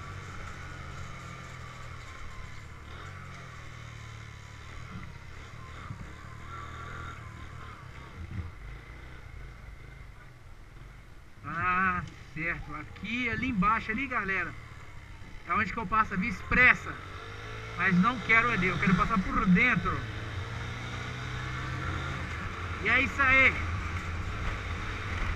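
A motorcycle engine hums steadily at low speed.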